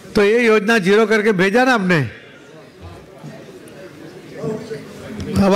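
A middle-aged man speaks forcefully into a microphone, heard over loudspeakers in an echoing hall.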